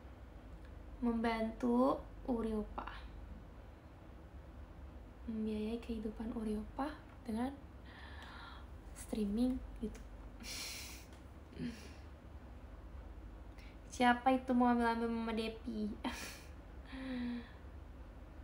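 A young woman speaks softly and casually, close by, in short bursts.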